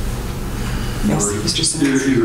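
An elderly man speaks calmly into a microphone in a large room.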